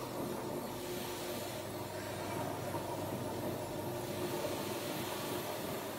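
A rotary floor scrubbing machine hums as its motor spins a pad across a hard tiled floor.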